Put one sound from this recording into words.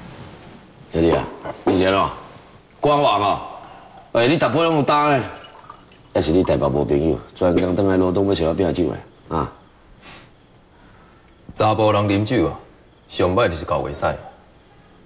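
A man speaks calmly and clearly at close range.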